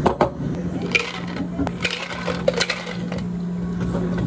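Ice cubes clatter into glasses.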